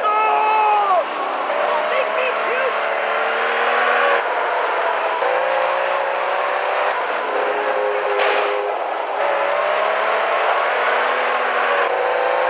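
A car engine hums steadily as a car drives along a road.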